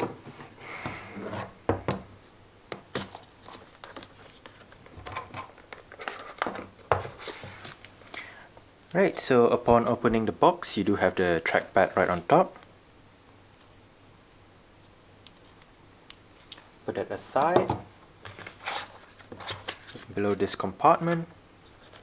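Hands slide and tap a cardboard box open.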